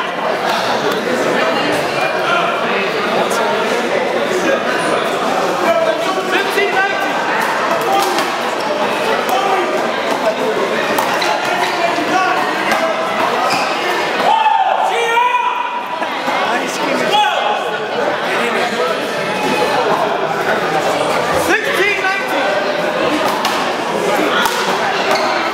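A rubber ball smacks against a wall and the floor in a large echoing hall.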